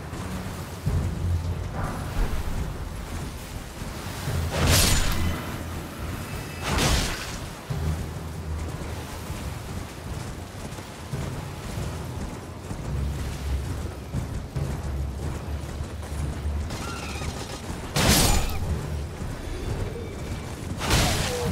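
A horse gallops with heavy hoofbeats.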